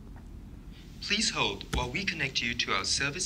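A recorded voice speaks calmly through a phone.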